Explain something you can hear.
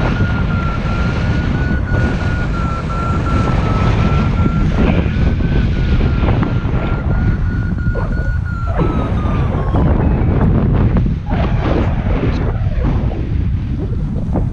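Strong wind rushes and buffets past a microphone high outdoors.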